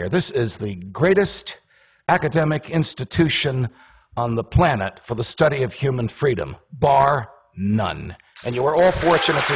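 A middle-aged man speaks with animation through a microphone in a large room.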